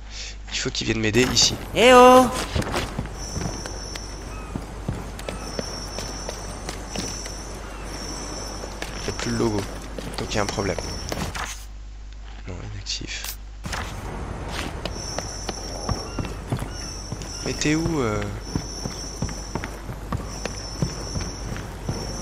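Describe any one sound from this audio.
Footsteps patter quickly on wooden boards.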